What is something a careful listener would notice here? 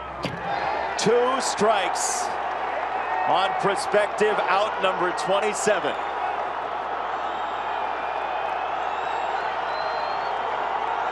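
A large stadium crowd cheers outdoors.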